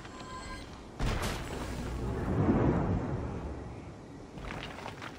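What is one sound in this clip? A deep magical whoosh swells and fades away.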